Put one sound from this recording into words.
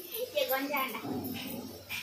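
Onions sizzle in a pan.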